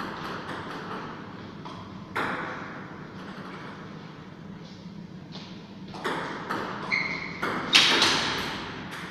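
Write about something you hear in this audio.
A table tennis ball clicks back and forth off paddles and a table in a room with a slight echo.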